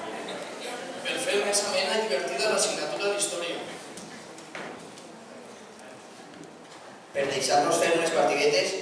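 A teenage boy speaks into a microphone over a loudspeaker.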